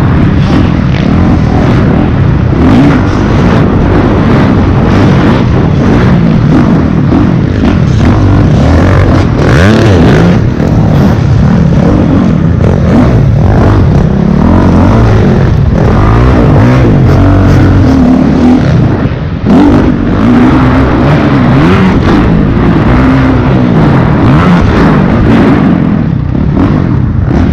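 A motorcycle engine revs loudly up close, rising and falling in pitch.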